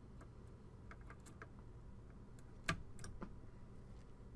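Fingers softly tap and scrape on a small hard part.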